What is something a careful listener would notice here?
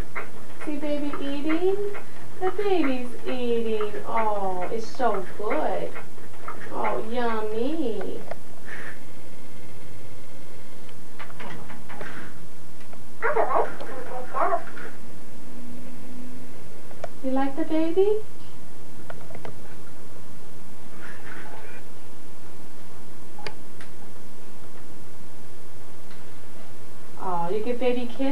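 A woman talks close by in a lively, sing-song voice.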